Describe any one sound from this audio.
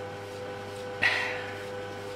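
A young man exhales and sighs close by.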